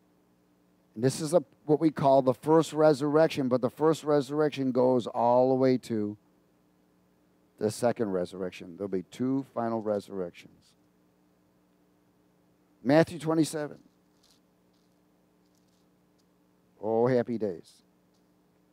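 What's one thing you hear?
A middle-aged man speaks with animation through a headset microphone.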